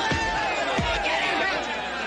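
A young man shouts with excitement.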